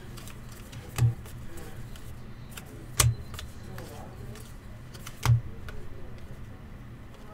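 Trading cards flick and slide against each other as they are sorted by hand.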